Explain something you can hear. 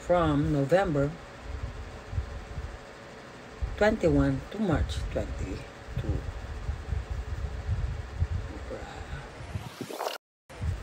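A makeup brush brushes softly against skin.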